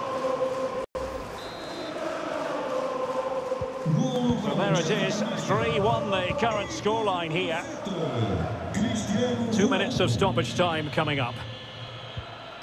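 A stadium crowd roars steadily in the distance.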